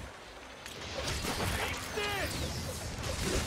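A huge beast roars.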